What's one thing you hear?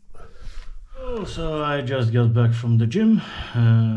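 A man speaks close up with animation.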